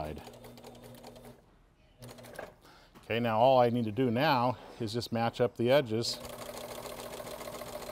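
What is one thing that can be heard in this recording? A sewing machine runs with a fast, steady stitching whir.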